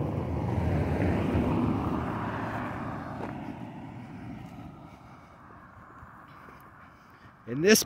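A car drives away along the road and fades into the distance.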